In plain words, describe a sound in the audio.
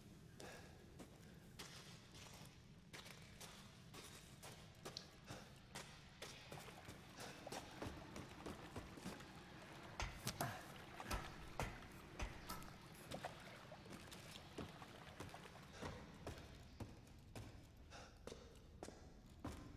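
Footsteps thud on wooden boards and wet ground.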